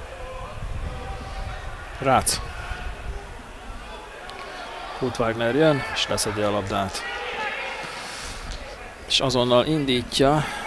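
A crowd murmurs in a stadium outdoors.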